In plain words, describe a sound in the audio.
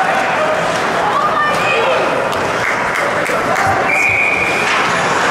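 Ice skates scrape across ice.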